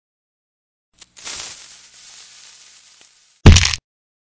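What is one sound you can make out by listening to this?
A fuse hisses loudly, then fades.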